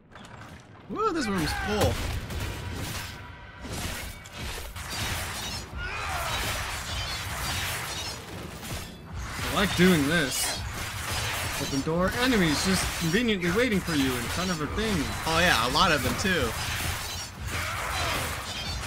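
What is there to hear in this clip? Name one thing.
Weapons clash and magic blasts crackle.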